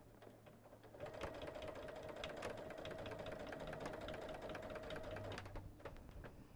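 A sewing machine hums and stitches steadily.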